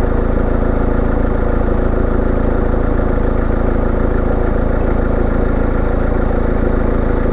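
A small engine idles with a rapid, steady, rattling beat close by.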